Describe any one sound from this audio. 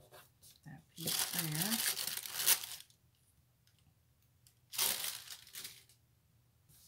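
A plastic sheet crinkles and rustles as it is lifted and handled.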